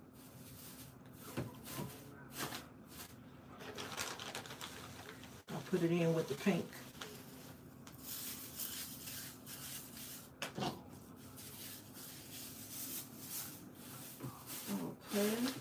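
Hands rustle shredded paper filler in a bowl.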